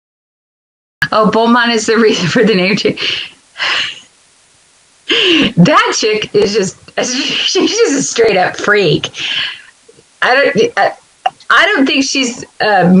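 An older woman talks with animation close to a microphone.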